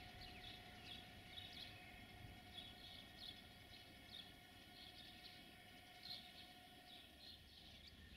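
An electric locomotive rumbles as it approaches in the distance.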